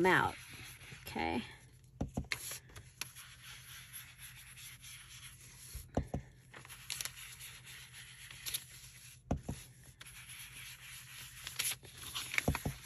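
A blending tool scrubs softly across paper.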